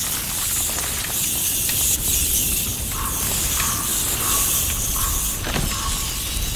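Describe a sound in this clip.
A swarm of rats squeaks and scurries.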